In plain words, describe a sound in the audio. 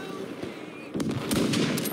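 An explosion booms nearby.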